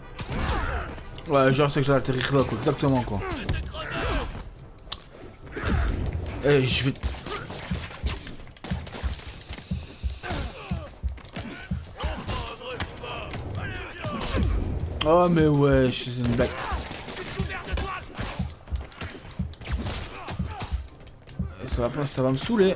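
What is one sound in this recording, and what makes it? Punches and thuds land in quick bursts.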